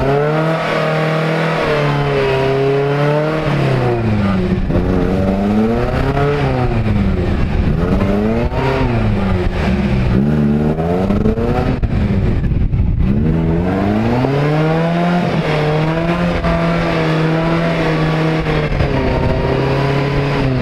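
Tyres spin and churn through thick mud.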